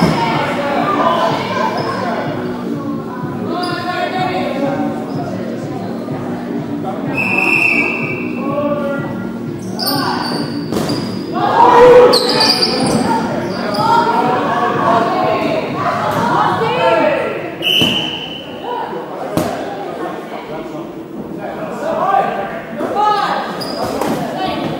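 A ball thuds against the floor and against players.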